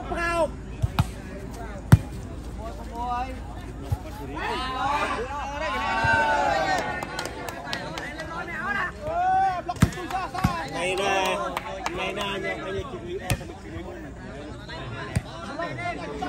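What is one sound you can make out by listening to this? A ball is struck with sharp thumps.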